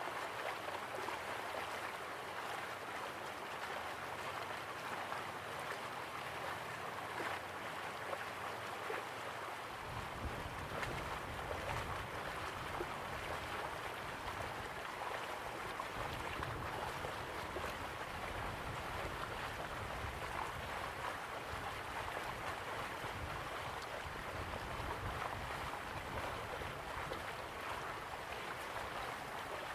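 A waterfall roars steadily.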